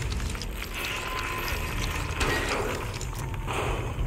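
A metal vent grate rattles as it is lifted away.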